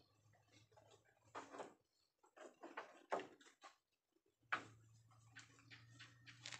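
Wooden boards knock and creak.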